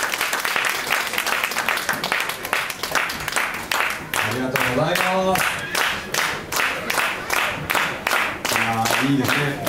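An audience claps along in a steady rhythm.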